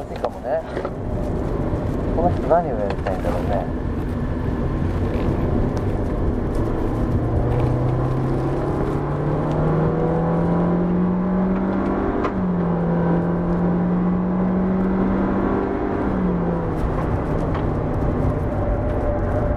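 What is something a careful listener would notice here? A car engine revs up and drops briefly as gears change.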